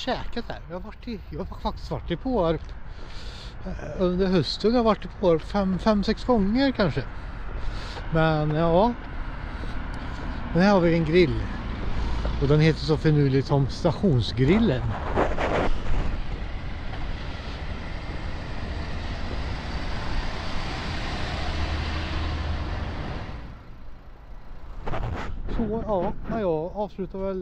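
A man talks close up with animation.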